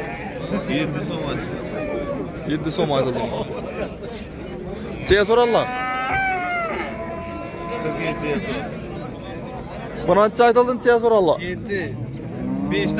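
Several men talk loudly nearby in a busy outdoor crowd.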